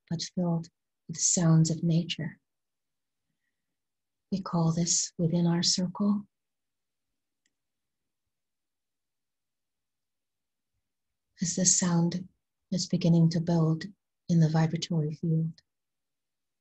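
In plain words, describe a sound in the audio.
A middle-aged woman speaks calmly and close to a microphone, with long pauses.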